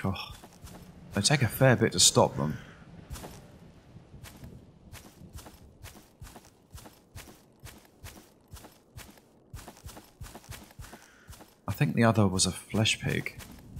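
Footsteps rustle through tall grass at a steady walking pace.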